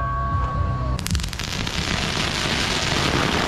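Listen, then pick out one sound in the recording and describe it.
Firecrackers crackle and pop in a rapid burst outdoors.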